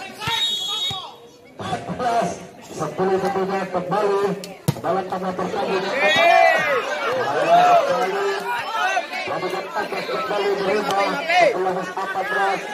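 A crowd of spectators cheers and shouts outdoors.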